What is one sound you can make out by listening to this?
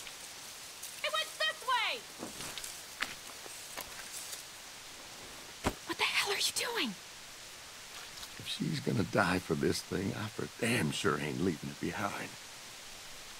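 An older man speaks in a low, weary voice.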